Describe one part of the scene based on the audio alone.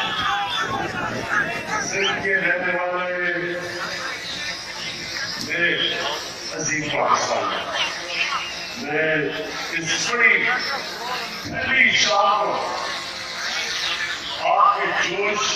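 A man speaks loudly into a microphone over a loudspeaker.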